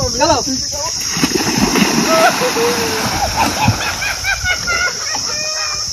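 A body splashes into water and churns through it.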